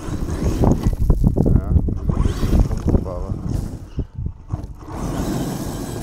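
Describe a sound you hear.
A toy car's motor whirs as it drives over gravel.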